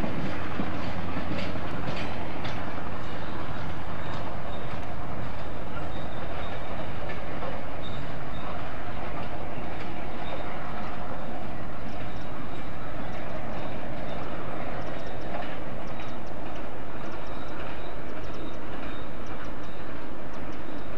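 A diesel locomotive engine rumbles steadily in the distance as it moves away.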